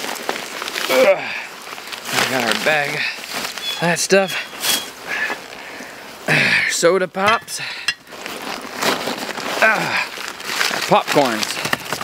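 A paper bag rustles in a man's hands.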